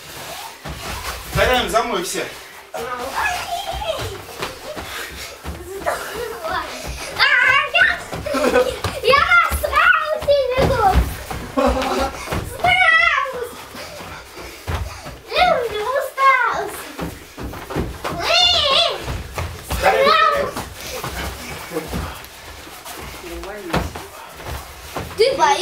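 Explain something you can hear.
A young woman talks and calls out with animation nearby.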